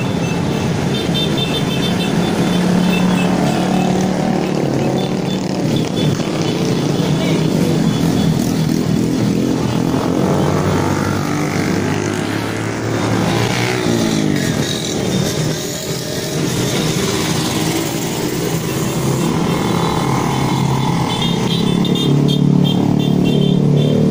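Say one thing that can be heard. Many motorbike engines drone and buzz steadily as riders pass close by outdoors.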